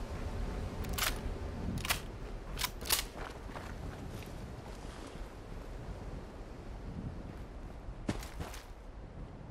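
Footsteps crunch on gravel and rock.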